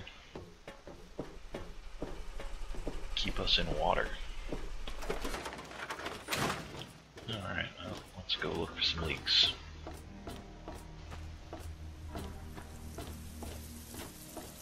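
Footsteps clang on metal flooring at a steady walking pace.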